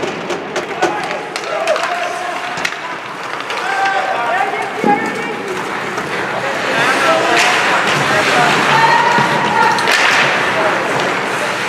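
Skates scrape and hiss across the ice.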